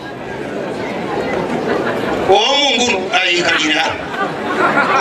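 A man speaks loudly and with animation through a microphone and loudspeakers outdoors.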